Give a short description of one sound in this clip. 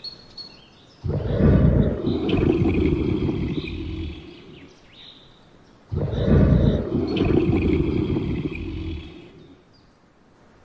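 A lion roars loudly with a deep rumble.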